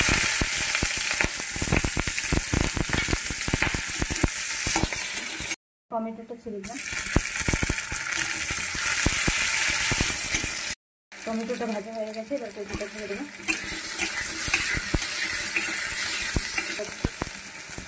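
Food sizzles and hisses loudly in a hot pan.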